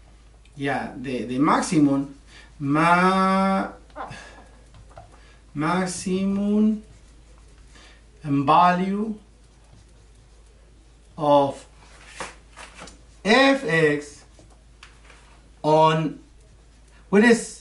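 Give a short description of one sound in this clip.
A middle-aged man speaks calmly and slowly, close by, in short phrases with pauses.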